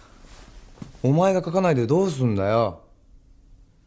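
A young man asks a question softly, close by.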